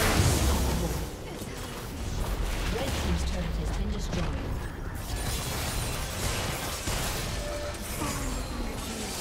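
Game spells and attacks crackle and thud in quick bursts.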